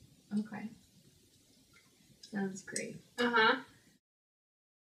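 A young woman speaks briefly and calmly.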